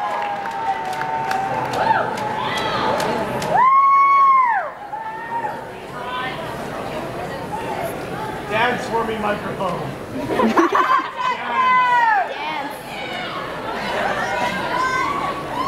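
A crowd chatters.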